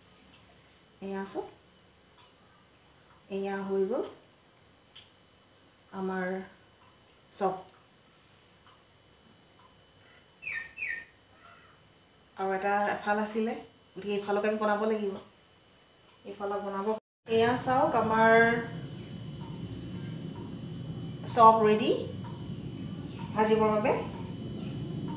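A woman speaks calmly close by, in short phrases with pauses.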